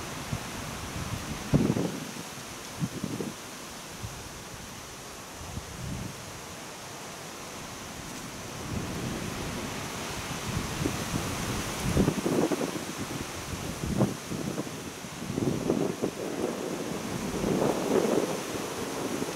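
Wind blows steadily outdoors, with gusts buffeting now and then.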